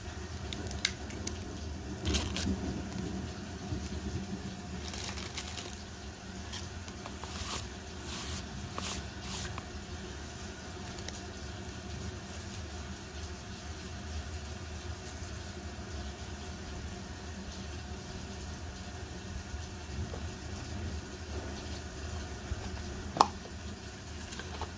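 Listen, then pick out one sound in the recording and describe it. An eraser rubs on paper.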